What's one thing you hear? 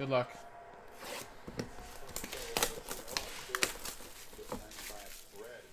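Plastic wrapping crinkles and tears as it is pulled open.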